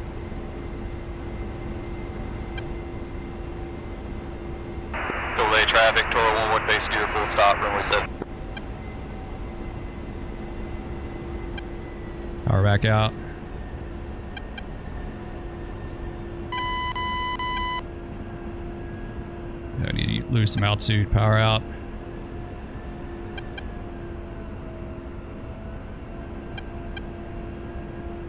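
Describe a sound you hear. A jet engine hums steadily inside a cockpit.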